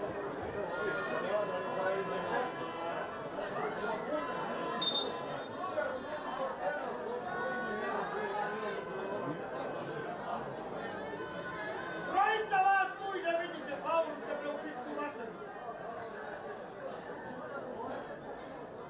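Men talk nearby in an open-air crowd.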